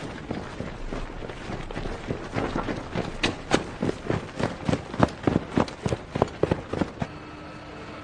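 Soldiers' boots tramp rhythmically on the ground.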